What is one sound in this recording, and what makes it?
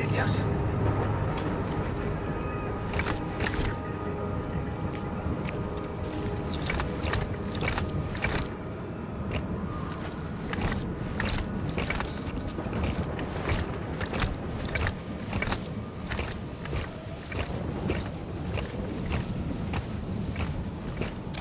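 Heavy boots crunch through snow in a steady rhythm.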